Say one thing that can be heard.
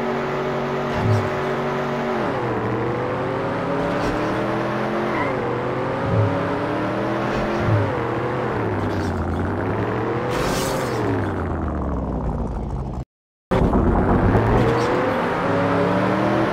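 A racing car engine revs and drones, rising and falling in pitch.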